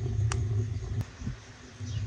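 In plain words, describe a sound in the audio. A pot of fruit bubbles as it boils.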